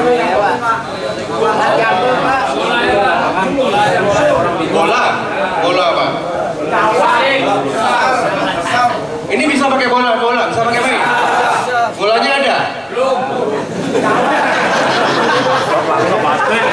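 A man speaks with animation through a microphone, heard over loudspeakers in an echoing space.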